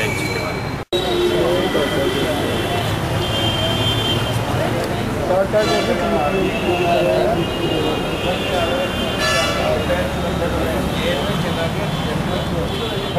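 Several men talk in the background outdoors.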